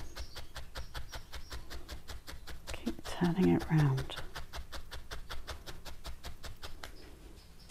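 A felting needle pokes rapidly and steadily into a foam pad.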